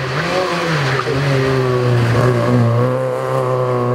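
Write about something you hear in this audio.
Tyres hiss on the road as a car passes.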